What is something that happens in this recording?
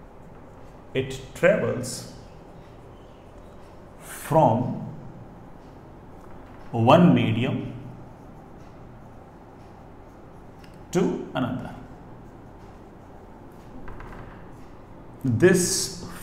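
A man speaks calmly in short phrases nearby.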